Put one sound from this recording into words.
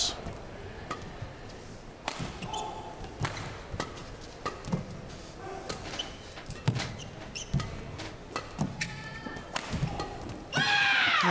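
A badminton racket strikes a shuttlecock back and forth in a rally.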